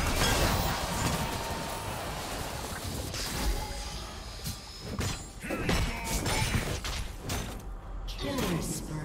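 Magic spells whoosh and crackle in a fast computer game battle.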